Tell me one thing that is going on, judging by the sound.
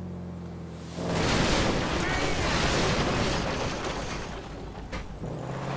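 Tyres crunch and skid over loose dirt.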